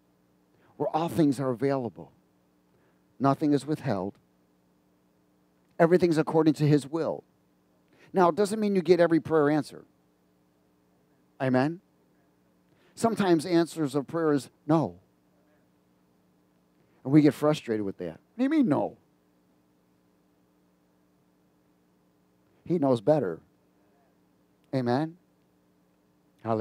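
A middle-aged man speaks with animation through a headset microphone, in short bursts with pauses.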